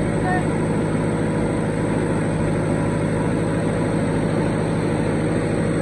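A diesel engine rumbles and chugs steadily close by.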